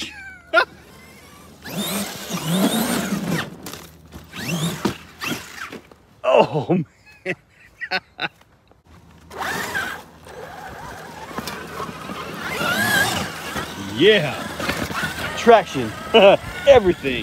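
A small electric motor whines and revs up and down.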